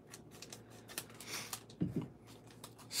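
Scissors snip through a foil wrapper.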